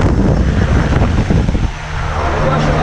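Wind rushes loudly past an open aircraft door.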